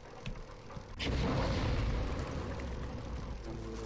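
A burst of flame whooshes.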